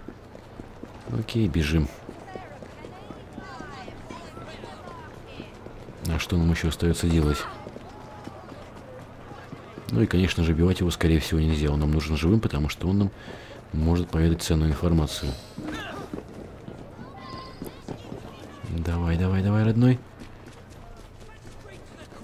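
Footsteps run on cobblestones.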